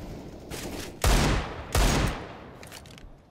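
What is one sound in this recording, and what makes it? Pistol shots ring out sharply, close by.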